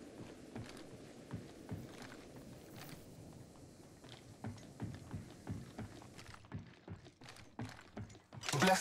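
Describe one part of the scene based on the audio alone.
Footsteps thud quickly on a metal floor.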